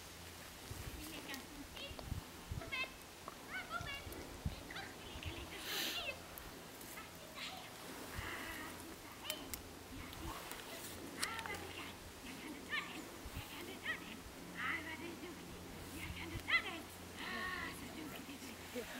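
A man calls out and talks to a dog outdoors.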